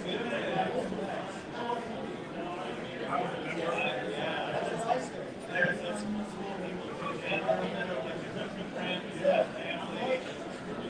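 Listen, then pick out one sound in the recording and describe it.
Several men and women talk over one another at a distance.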